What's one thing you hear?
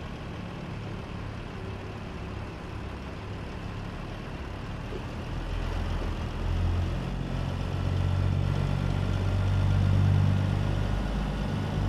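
A diesel truck engine idles with a low rumble that grows louder and deeper.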